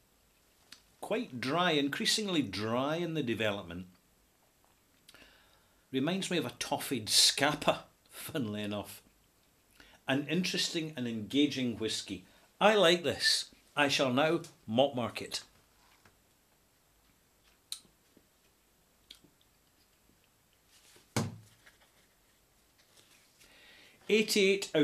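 A middle-aged man talks calmly and close to a microphone, with pauses.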